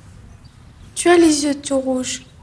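A girl speaks with animation nearby.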